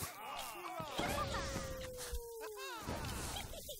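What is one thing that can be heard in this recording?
A magical spell bursts with a bright shimmering whoosh.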